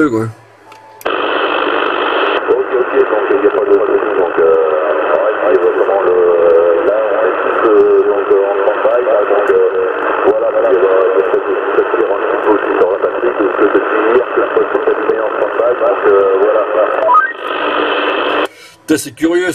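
A voice comes through a radio loudspeaker, thin and crackly.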